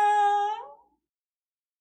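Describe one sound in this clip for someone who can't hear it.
A young woman screams excitedly into a close microphone.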